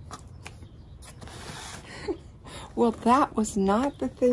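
A book slides out of a cardboard box.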